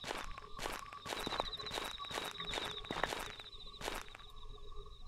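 Footsteps crunch steadily through dry leaves.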